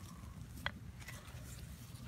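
Gloved fingers scratch through loose dry soil.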